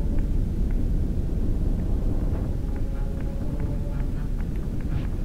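A low rumbling drone hums steadily throughout.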